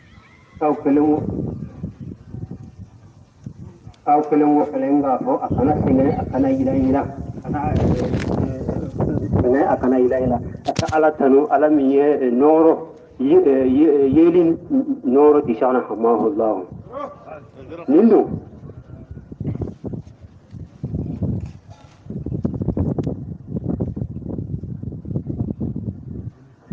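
A man chants in a melodic voice close by.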